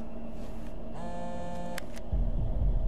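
A mobile phone gives a short electronic beep.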